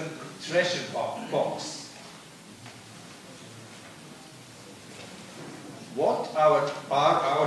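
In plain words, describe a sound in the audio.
A middle-aged man reads out calmly through a microphone.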